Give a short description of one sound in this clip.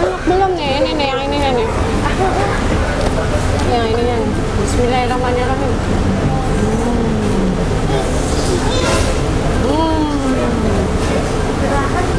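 Young children talk and call out in high voices nearby.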